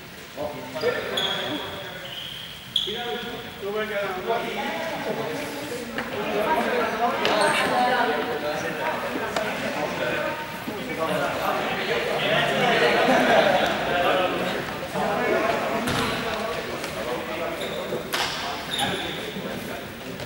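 Shoes squeak sharply on a hard floor.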